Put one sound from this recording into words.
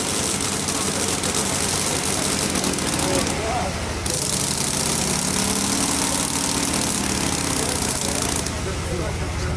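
A spinning disc grinds with a harsh hiss.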